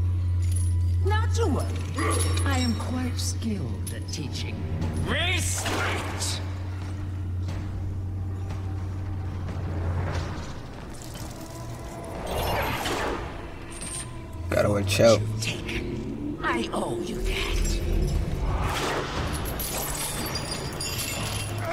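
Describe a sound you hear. Metal blades clash and ring in a fight.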